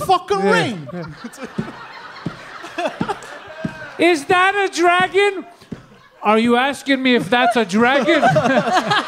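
A second man talks and laughs loudly through a microphone.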